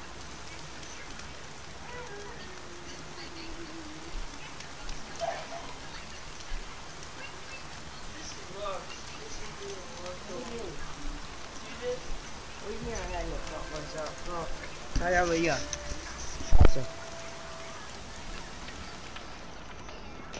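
A campfire crackles and hisses.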